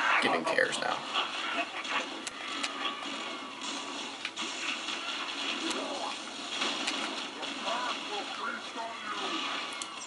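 Gunfire crackles rapidly from a video game.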